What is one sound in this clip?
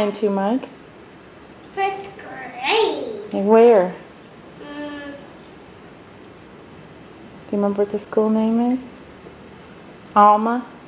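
A young boy talks excitedly in a high voice, close by.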